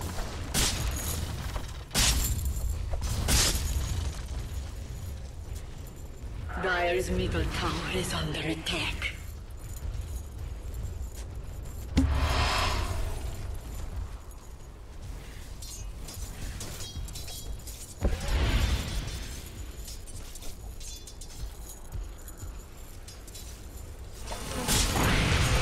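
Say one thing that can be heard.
Video game fight sounds of blows and magic blasts crackle and thud.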